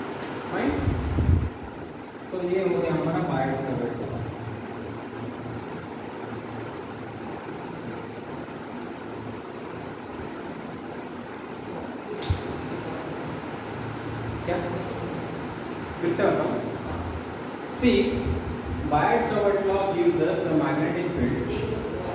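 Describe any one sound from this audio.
A man lectures nearby, speaking clearly and steadily.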